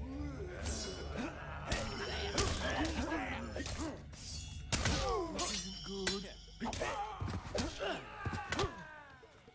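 Fighters grunt and yell as they battle.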